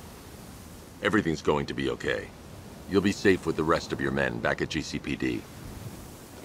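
A man answers in a deep, low, calm voice.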